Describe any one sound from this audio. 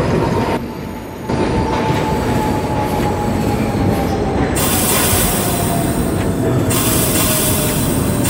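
A subway train rumbles and clatters along the tracks in a tunnel.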